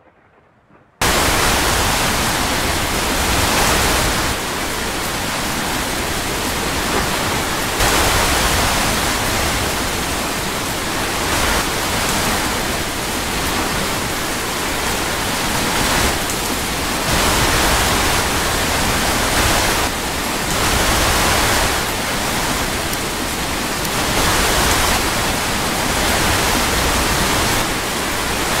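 Strong wind roars and howls steadily, rising and falling in gusts.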